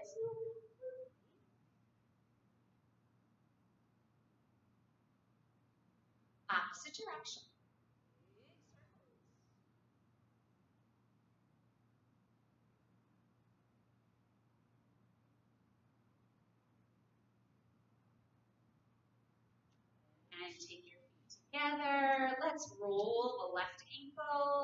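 A woman speaks calmly and clearly, close to a microphone, in short bursts.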